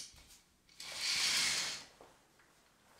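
Curtains slide open along a rail.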